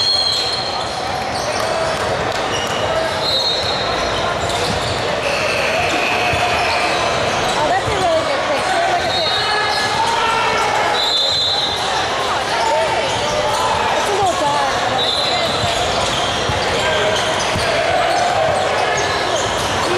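A crowd of people chatters and calls out in a large echoing hall.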